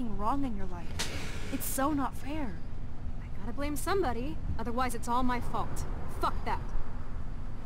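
A young woman answers bitterly and close.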